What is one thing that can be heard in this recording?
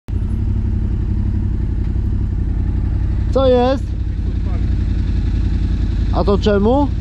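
A quad bike engine idles with a steady low rumble.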